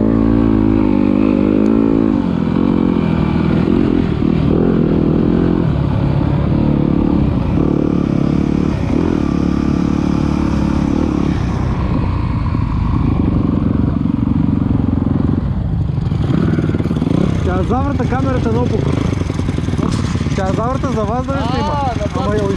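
A dirt bike engine drones and revs close by.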